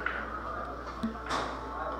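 A cue strikes a billiard ball with a sharp click.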